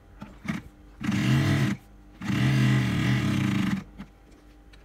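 A sewing machine whirs in two short quick bursts.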